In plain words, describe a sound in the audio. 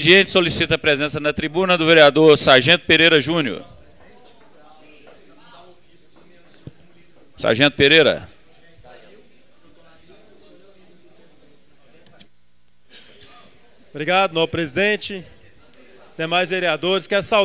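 A man speaks firmly through a microphone.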